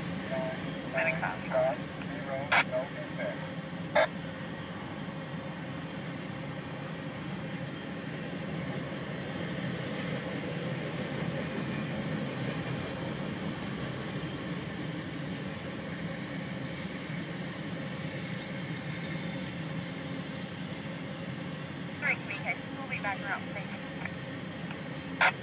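Metal wheels squeal and click on the rails.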